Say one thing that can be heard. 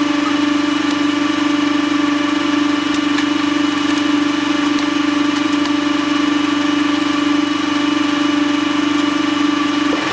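A tractor engine hums steadily nearby.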